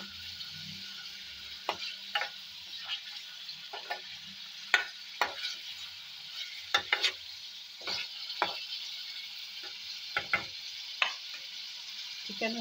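Chicken sizzles gently in hot oil.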